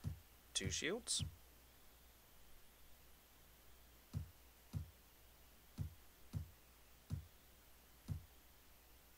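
Inventory items drop into place with soft, low thuds.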